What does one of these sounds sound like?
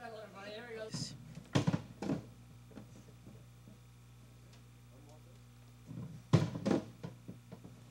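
A drum is thumped a few times.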